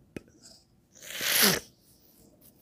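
A young man blows a puff of breath into a microphone.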